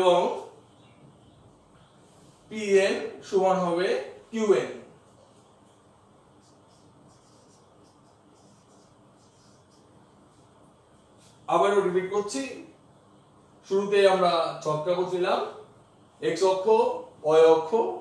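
A man speaks calmly and clearly nearby, in short bursts with pauses.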